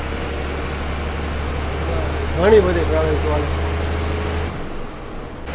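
An engine rumbles steadily from inside a moving vehicle.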